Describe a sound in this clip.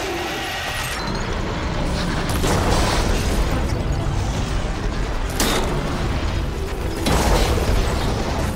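A huge mechanical beast roars with a deep rumble.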